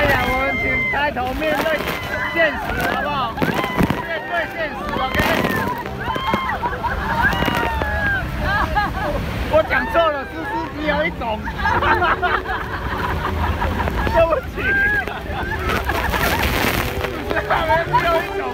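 Young people laugh loudly.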